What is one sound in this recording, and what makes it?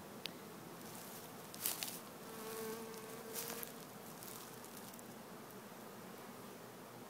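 Bees buzz in a dense swarm close by.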